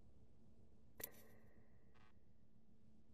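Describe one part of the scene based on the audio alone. A short menu click sounds.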